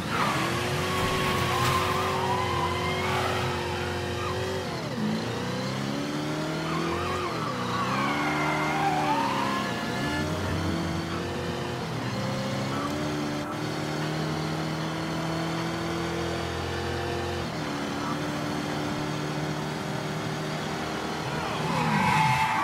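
Tyres squeal on the road as a car turns.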